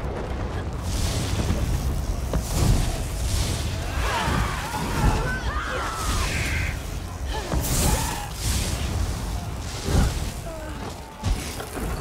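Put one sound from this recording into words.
Electric spells crackle and zap in bursts during a fight.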